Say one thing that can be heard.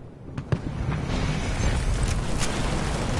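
A tornado's wind roars loudly.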